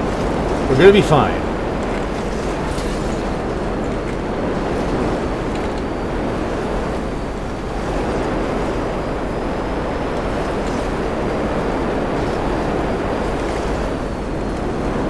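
A jet engine roars steadily up close.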